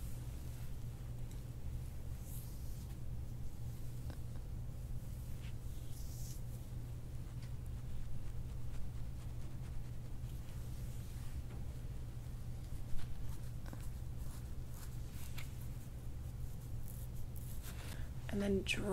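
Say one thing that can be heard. Fingers rustle and scratch softly through hair close by.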